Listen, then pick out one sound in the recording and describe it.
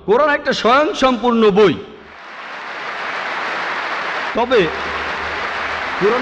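A man speaks forcefully through a loudspeaker.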